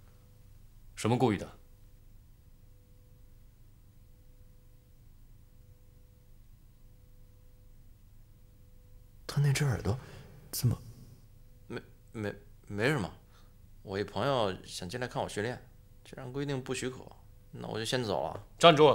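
Another young man answers in a tense, hesitant voice, close by.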